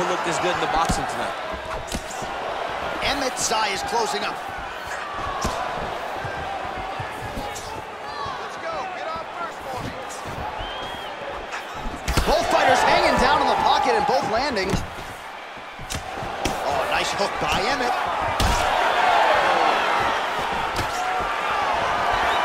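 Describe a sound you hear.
A large crowd cheers and roars in an arena.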